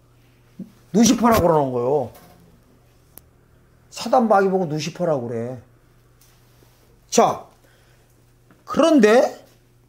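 A middle-aged man preaches with fervour into a microphone, in short bursts with pauses.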